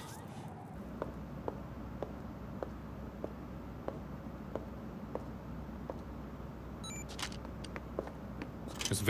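High heels click steadily on a hard floor.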